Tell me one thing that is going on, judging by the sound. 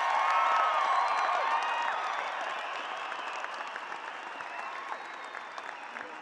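A large crowd applauds in a big echoing hall, slowly fading.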